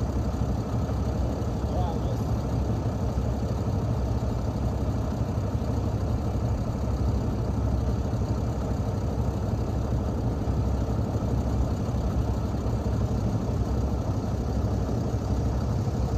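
A truck engine idles nearby with a low, steady rumble.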